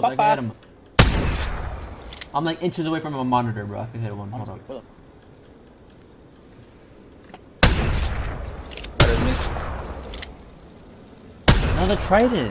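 A gun fires single loud shots.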